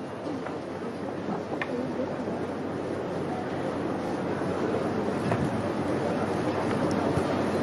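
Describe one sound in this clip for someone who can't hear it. A large crowd murmurs and shuffles.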